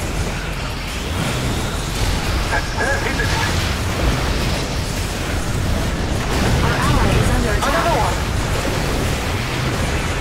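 Laser weapons zap and hum repeatedly.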